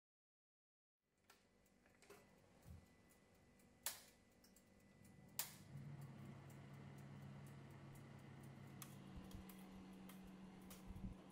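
An oven fan hums steadily.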